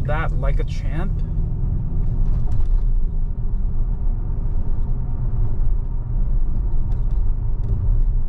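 A car's tyres rumble steadily on the road from inside the car.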